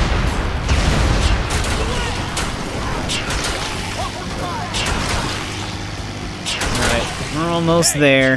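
Bodies thud against a truck as it ploughs through them.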